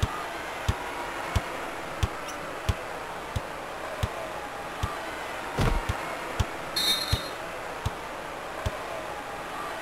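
A crowd murmurs steadily in a large arena.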